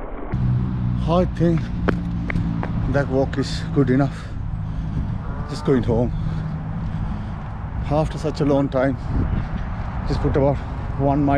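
A middle-aged man talks calmly close to the microphone outdoors.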